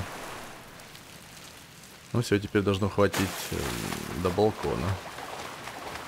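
Water splashes as a swimmer plunges into a pool.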